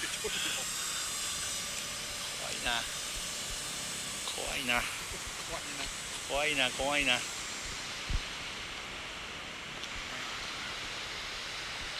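A river rushes steadily over stones.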